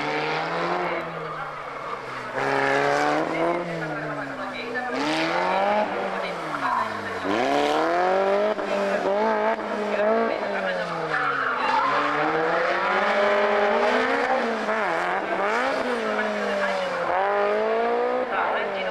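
A car engine revs hard, rising and falling as the car drifts through tight corners.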